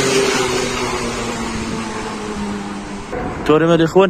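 A car drives past on a street nearby.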